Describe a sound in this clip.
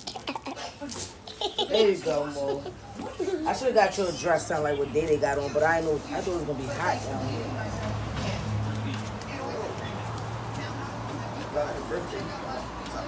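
Children chatter and squeal excitedly nearby.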